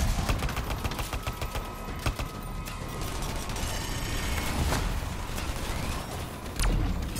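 Rapid gunfire blasts in a video game.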